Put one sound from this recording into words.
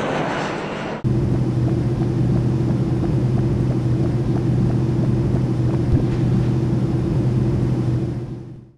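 Aircraft engines drone steadily from inside a cabin.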